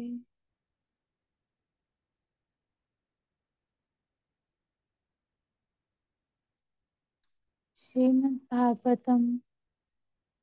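A woman chants a short prayer in a calm, steady voice close by.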